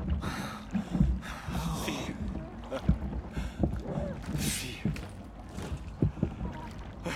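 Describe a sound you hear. Heavy blows thud in a struggle.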